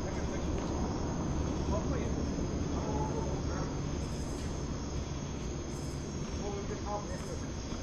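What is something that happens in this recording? A tennis ball is hit back and forth with rackets, outdoors.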